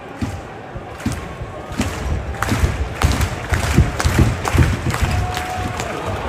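Spectators nearby clap their hands.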